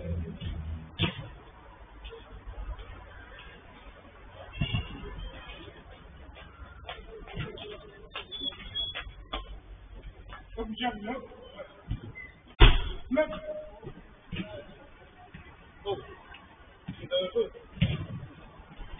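A football is kicked with sharp thuds now and then.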